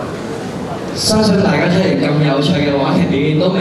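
A young man speaks into a microphone over loudspeakers.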